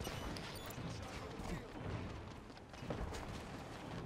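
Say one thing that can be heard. Heavy armoured footsteps thud on the ground.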